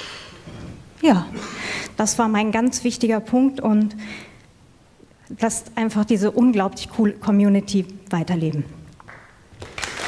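A woman speaks with animation into a microphone in a large hall.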